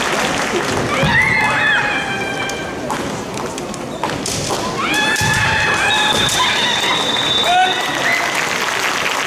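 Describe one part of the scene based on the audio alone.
Young men shout loud, drawn-out cries in a large echoing hall.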